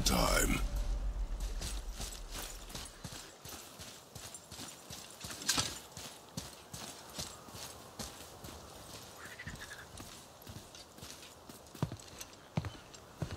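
Heavy footsteps thud steadily on stone.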